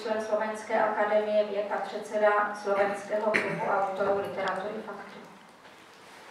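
A middle-aged woman reads out steadily through a microphone and loudspeaker.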